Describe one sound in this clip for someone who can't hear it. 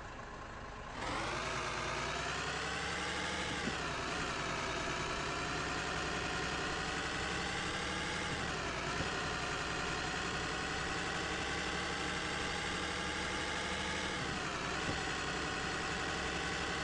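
A truck engine roars as the truck drives off, its pitch rising and dipping with each gear change.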